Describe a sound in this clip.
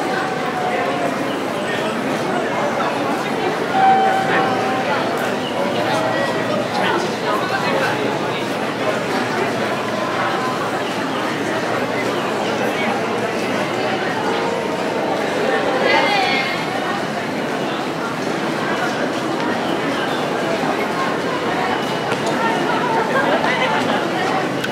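Footsteps of many people shuffle across a hard floor.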